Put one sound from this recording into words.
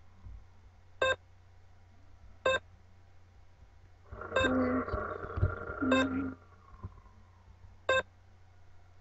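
Keypad buttons click as a code is entered.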